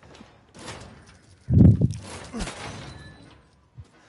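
An iron gate creaks open.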